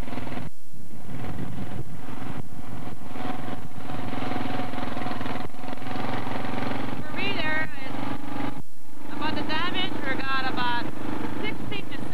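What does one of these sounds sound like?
A car engine hums steadily, heard from inside the car.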